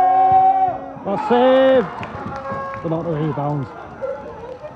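A small crowd of spectators cheers and shouts outdoors.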